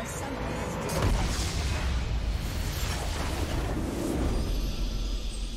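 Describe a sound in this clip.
A loud rumbling explosion booms and roars.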